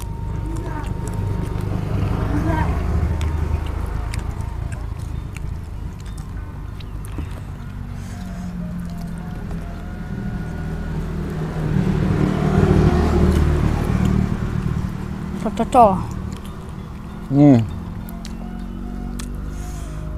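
Fingers squish into rice and sauce.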